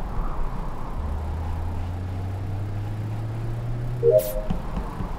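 A game's fuel pump hums with a slowly rising tone.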